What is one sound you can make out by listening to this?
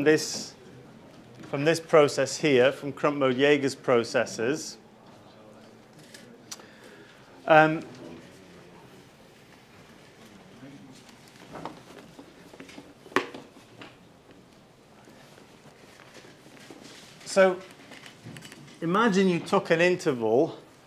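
A man lectures calmly, pausing between phrases.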